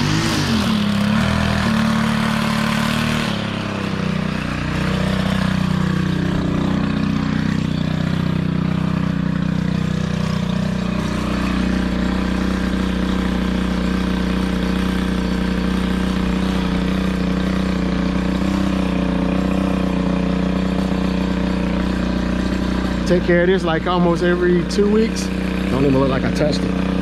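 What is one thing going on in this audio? A string trimmer motor whines steadily close by.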